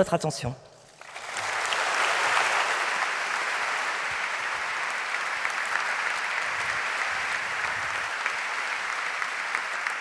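A large audience applauds steadily.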